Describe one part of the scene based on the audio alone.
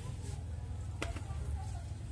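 A plate clinks as it is set down on a table.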